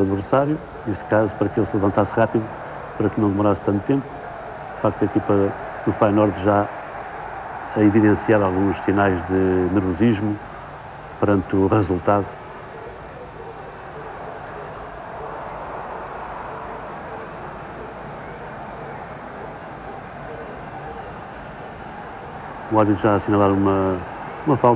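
A large crowd murmurs and roars in a big open stadium.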